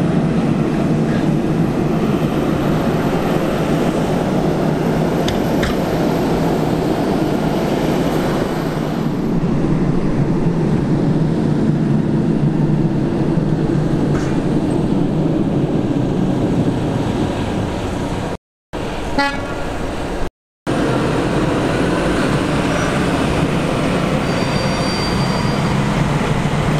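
A large tractor engine rumbles loudly and steadily close by.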